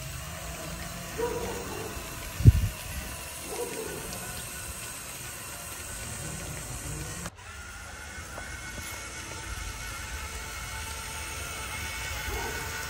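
Small wheels rumble over rough concrete.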